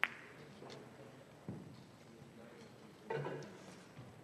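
Billiard balls click against each other and thud against the cushions.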